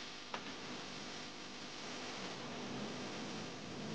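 An acoustic guitar strums.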